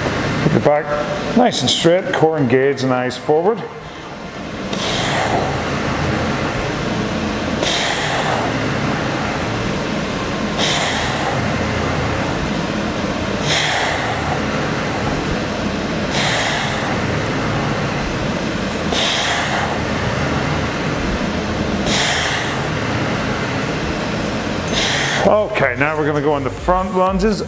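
A man speaks energetically, close to a microphone.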